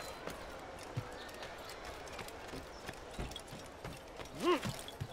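Footsteps patter quickly across a hard roof.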